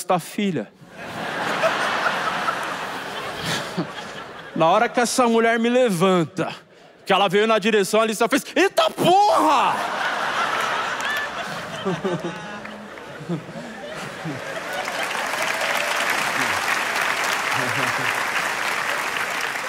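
An audience laughs loudly in a large hall.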